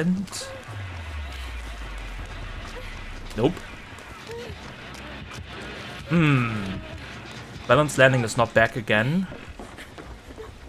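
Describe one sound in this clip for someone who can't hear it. Footsteps rustle through grass and over wooden boards.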